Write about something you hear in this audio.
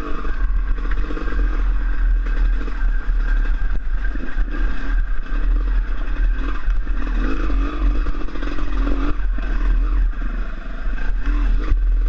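A dirt bike engine revs and putters up close.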